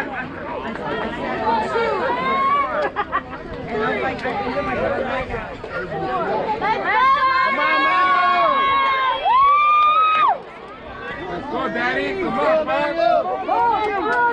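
Young children shout and cheer loudly outdoors.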